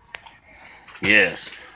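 An elderly man speaks briefly, close by.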